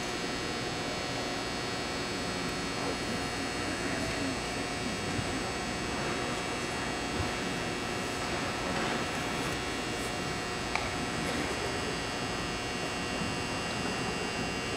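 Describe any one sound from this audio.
A marching band holds a long, steady chord outdoors in a large open stadium.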